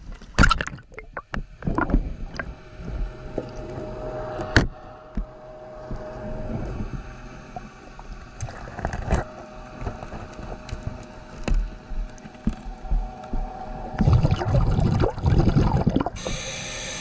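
Water bubbles and gurgles, heard muffled from underwater.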